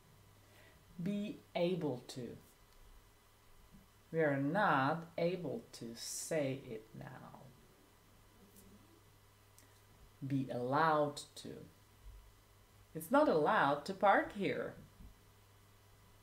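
A young woman speaks clearly and calmly close to a microphone, in short phrases with pauses.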